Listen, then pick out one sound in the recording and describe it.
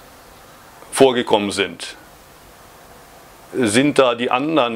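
A middle-aged man speaks calmly and close into a microphone.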